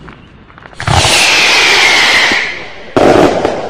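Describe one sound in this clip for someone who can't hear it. A firework whistles shrilly.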